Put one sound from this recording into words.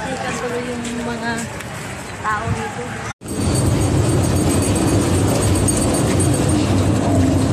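A crowd of people chatters along a busy street outdoors.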